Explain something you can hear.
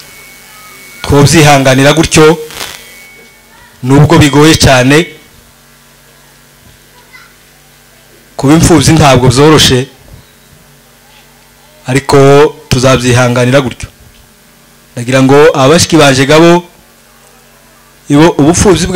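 A young man speaks with emotion into a microphone, in short bursts with pauses, heard through loudspeakers.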